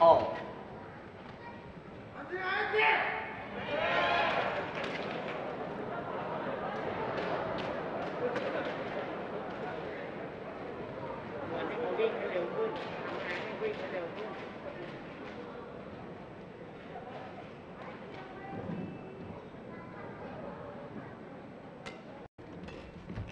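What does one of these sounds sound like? A crowd of spectators murmurs in a large indoor arena.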